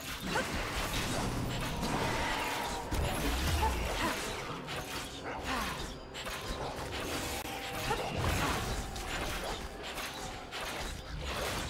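Game spell effects whoosh and crackle in rapid bursts.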